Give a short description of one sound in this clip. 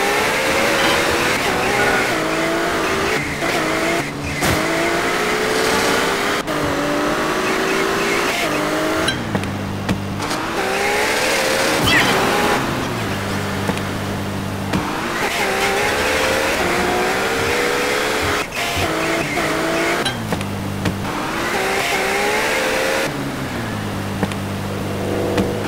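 A car engine revs up and down as the car speeds along.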